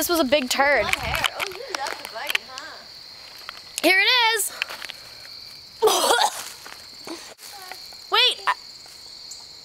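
A young woman talks loudly and with animation close by.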